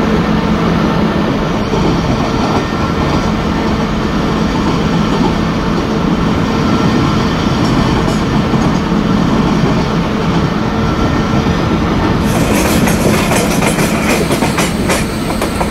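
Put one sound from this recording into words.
An electric locomotive rumbles steadily along the rails.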